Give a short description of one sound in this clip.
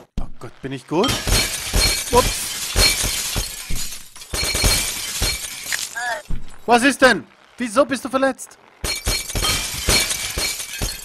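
Thuds and clatters sound as a bike crashes into stacked boxes.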